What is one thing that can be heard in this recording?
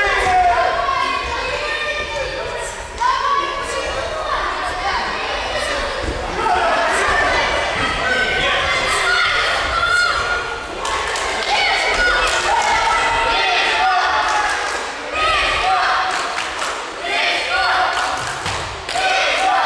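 Children shout and cheer loudly in a large echoing hall.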